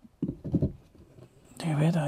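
A hand taps on a wooden panel.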